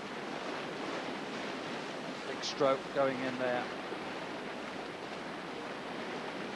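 A paddle splashes in rough water.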